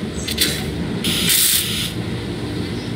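A tool hisses briefly.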